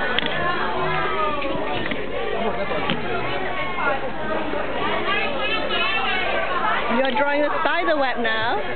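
Several children and adults chatter nearby, outdoors.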